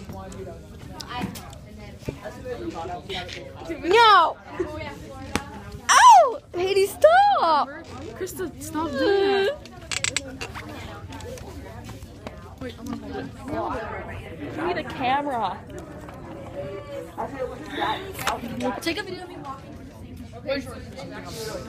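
Young women talk and laugh close by.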